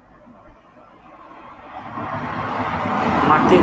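A man laughs, heard over an online call.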